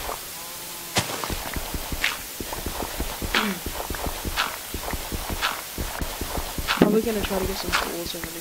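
A pickaxe digs into dirt with quick, repeated crunching thuds.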